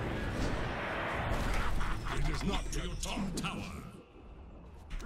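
Video game battle effects crackle and clash.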